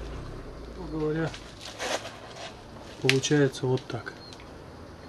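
A plastic panel knocks and rattles as it is handled.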